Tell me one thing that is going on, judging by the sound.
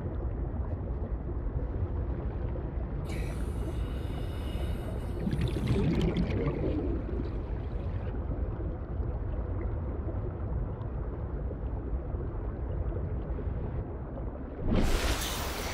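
Water rumbles low and muffled, as if heard from underwater.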